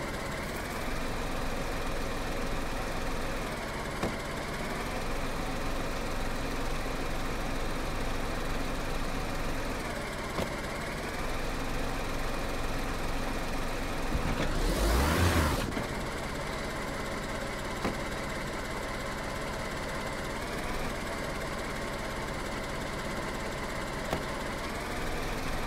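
A car engine hums steadily while idling and creeping along.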